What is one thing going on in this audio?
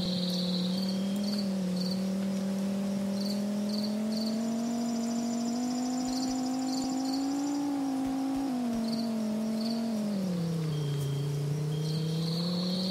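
A car engine hums steadily, its pitch rising and falling with speed.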